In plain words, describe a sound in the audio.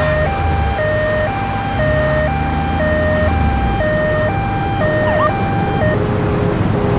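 An ambulance siren alternates between two tones.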